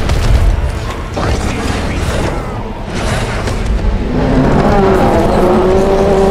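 Weapons clash and strike in a fierce fight.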